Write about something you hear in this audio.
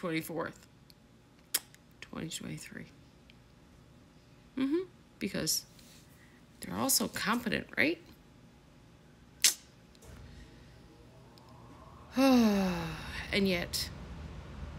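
A woman speaks close to a microphone, in short expressive bursts.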